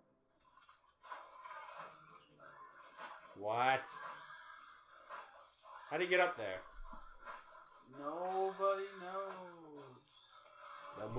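A young man makes drawn-out, wavering vocal sounds close to the microphone.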